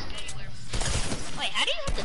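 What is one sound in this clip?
A gun fires a quick burst of shots.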